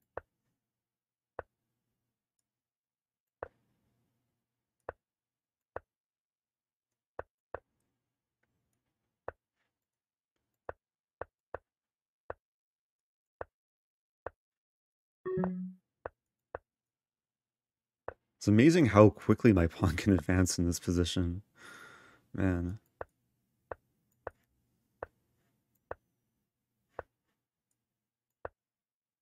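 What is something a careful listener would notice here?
Short clicks of chess pieces being moved sound at irregular intervals.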